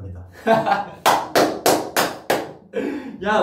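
A young man claps his hands several times quickly.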